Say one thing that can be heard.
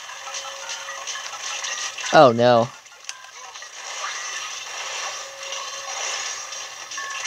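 A video game plays sound effects through a small tinny speaker.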